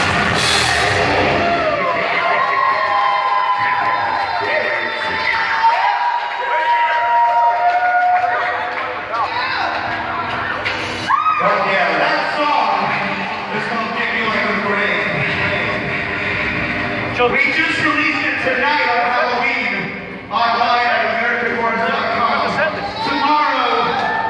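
Loud music plays.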